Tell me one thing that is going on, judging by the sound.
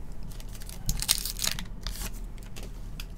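Plastic-wrapped trading cards rustle and crinkle as hands handle them.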